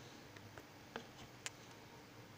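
A laptop key clicks as it is pressed.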